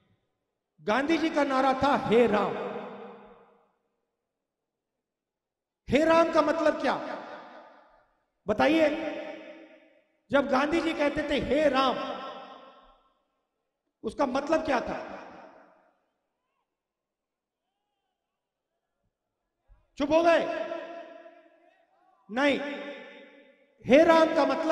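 A man speaks forcefully into a microphone over a loudspeaker, in short phrases with long echoing pauses.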